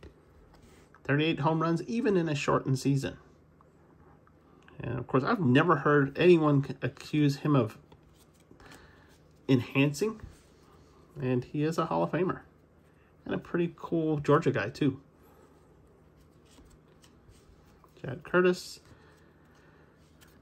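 Cards rustle softly as hands flip through them.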